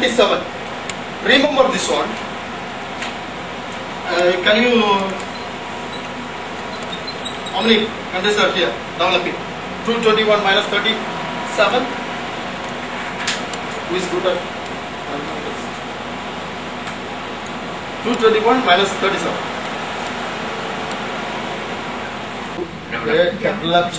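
A man speaks with animation to an audience through a microphone.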